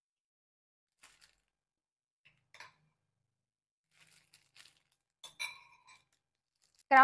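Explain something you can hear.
A plastic bag crinkles softly as it is handled.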